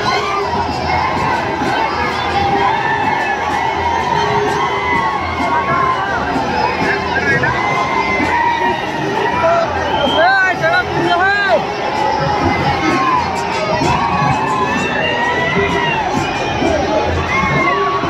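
A large crowd chants and cheers loudly outdoors.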